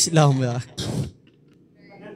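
A young man sings into a microphone close by.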